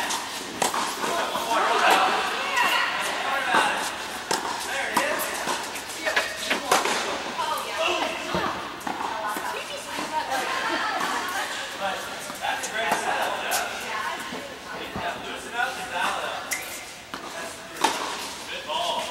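Tennis rackets strike balls in a large echoing indoor hall.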